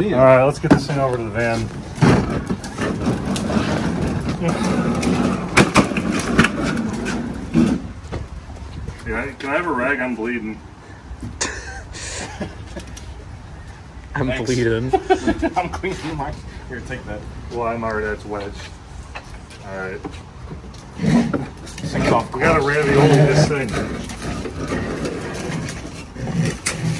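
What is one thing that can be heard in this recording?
Young men talk and laugh with animation close by.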